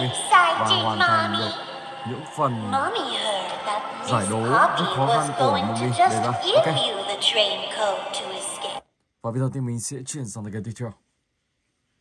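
A game plays sounds and music through a tablet speaker.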